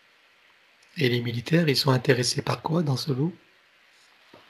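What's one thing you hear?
A man speaks calmly through a headset microphone on an online call.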